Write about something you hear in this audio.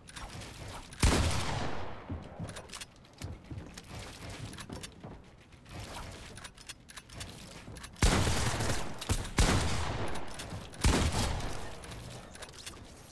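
Gunshots blast in a game, loud and sudden.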